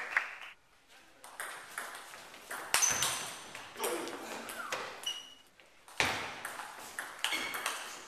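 A ping-pong ball clicks sharply back and forth between paddles and table.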